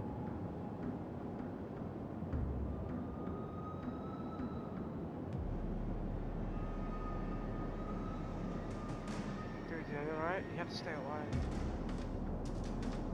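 A ship's engine rumbles low and steady.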